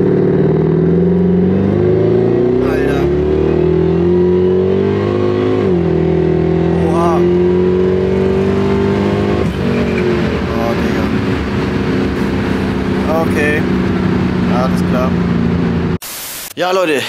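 A car engine roars loudly as it accelerates and shifts gears.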